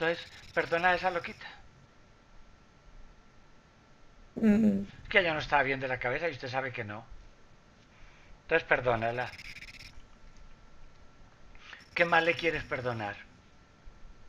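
An elderly man speaks calmly in short phrases, heard through an online call.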